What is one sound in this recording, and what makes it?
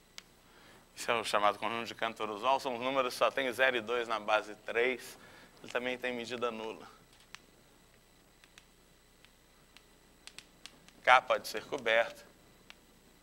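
A man speaks calmly, lecturing nearby.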